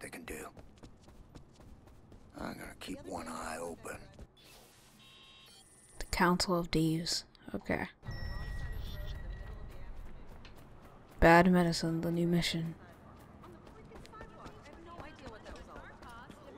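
Footsteps run quickly on pavement and grass.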